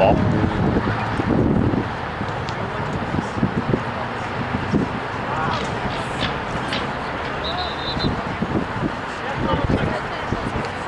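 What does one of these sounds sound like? Young men call out to one another across an open field, distant.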